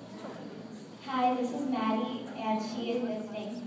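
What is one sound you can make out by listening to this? Children sing together in a large echoing hall.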